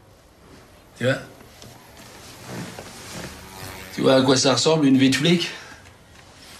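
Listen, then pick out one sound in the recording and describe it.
A man speaks loudly and with agitation, close by.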